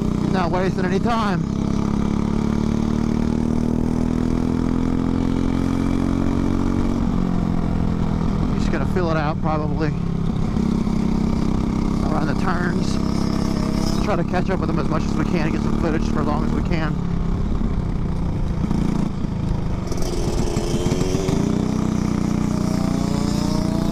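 A four-stroke single-cylinder racing kart engine roars at full throttle, rising and falling through corners.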